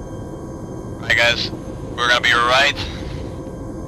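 A second man answers loudly and with urgency.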